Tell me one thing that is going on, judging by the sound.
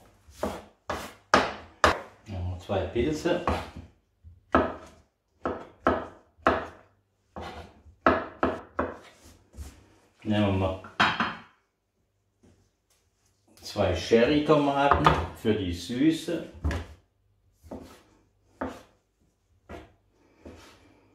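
A knife chops on a cutting board with quick, sharp knocks.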